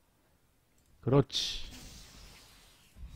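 A magic spell bursts with a shimmering whoosh and slowly fades.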